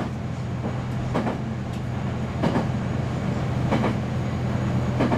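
A train engine hums steadily from inside the cab.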